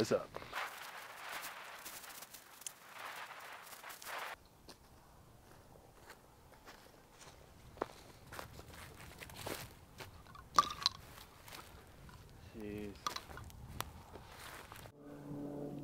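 Dry grass crunches under footsteps.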